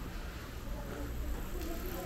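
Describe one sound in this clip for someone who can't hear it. A bicycle rolls past close by.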